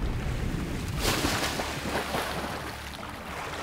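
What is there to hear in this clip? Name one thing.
Water splashes and bubbles as a swimmer breaks the surface.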